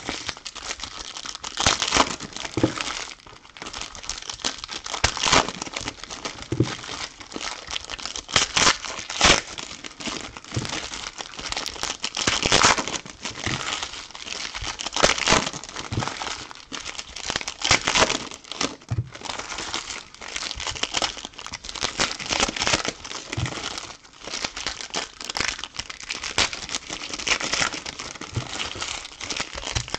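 Foil card wrappers crinkle and tear open close by.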